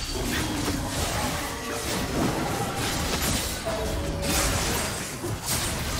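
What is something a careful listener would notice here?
Spell effects crackle and burst during a fantasy battle.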